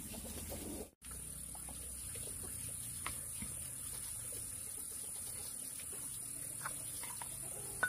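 A wooden paddle scrapes and pats rice in a metal pot.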